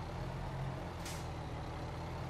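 A brief hiss of air brakes sounds.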